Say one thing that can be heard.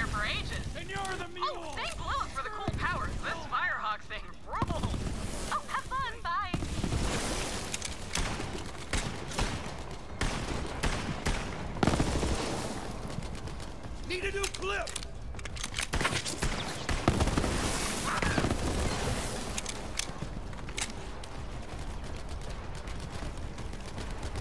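Rapid gunfire rattles and bangs.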